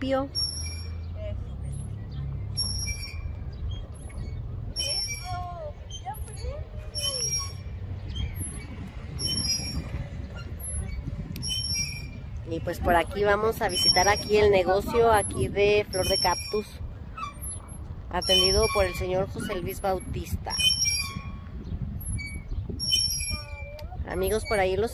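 Metal swing chains squeak in a steady rhythm.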